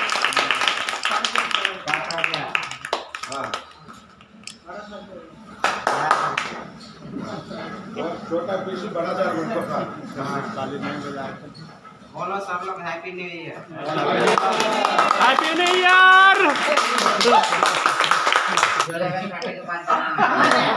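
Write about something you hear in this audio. A group of men claps hands.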